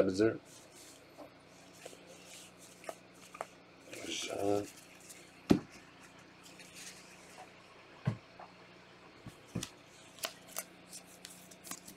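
Trading cards rustle and click as they are shuffled close by.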